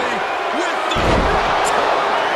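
A body slams onto the ring mat with a heavy thud.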